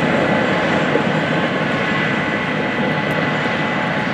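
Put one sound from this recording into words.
A grain cart rumbles away along a gravel lane.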